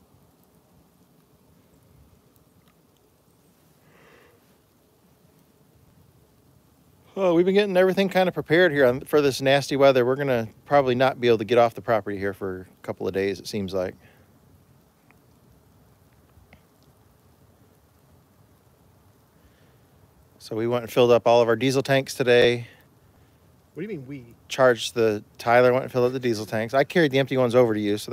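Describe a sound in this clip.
A fire crackles softly in a metal barrel.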